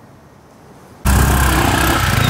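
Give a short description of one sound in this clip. A motorbike engine roars as the bike pulls away.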